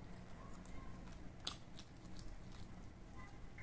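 A man chews food loudly and wetly close to a microphone.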